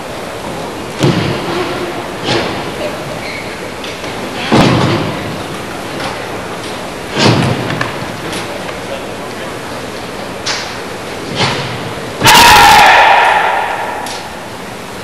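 Young men shout sharp fighting cries in unison in a large echoing hall.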